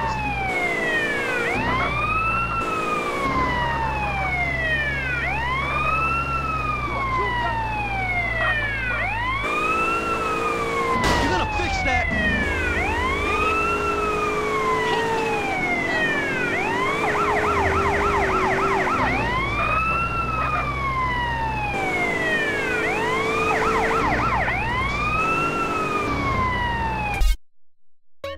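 A police siren wails up and down without pause.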